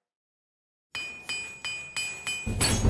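A hammer rings against metal in quick strokes.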